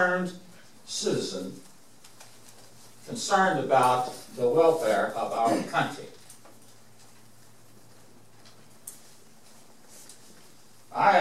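A man speaks in a room with a slight echo, in short bursts with pauses.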